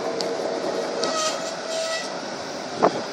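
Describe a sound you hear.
A tram's wheels squeal on the rails.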